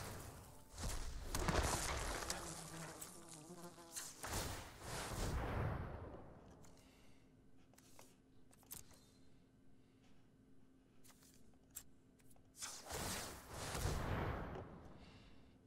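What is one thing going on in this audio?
Game effects whoosh and chime in bursts.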